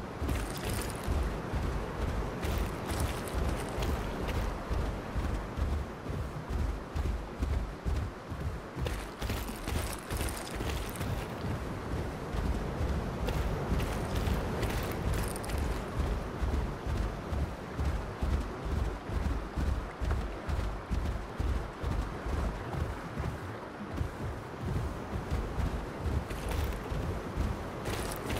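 Heavy footsteps thud steadily as a large creature runs over sand and rock.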